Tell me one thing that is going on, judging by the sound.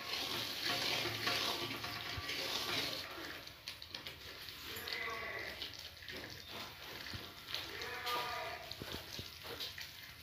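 Melted butter sizzles and bubbles in a metal pan.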